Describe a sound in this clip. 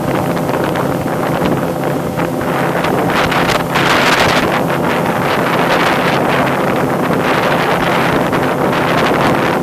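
An outboard motor roars steadily as a boat speeds past.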